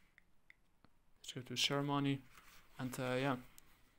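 A page of a paper book rustles as it is turned.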